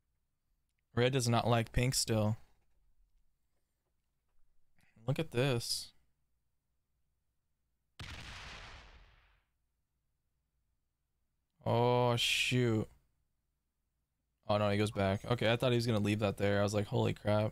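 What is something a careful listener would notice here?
A young man talks with animation, close to a microphone, in short bursts.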